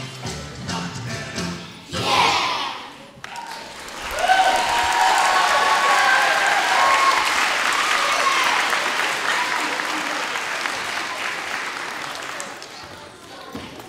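A large group of children sings together in a big echoing hall.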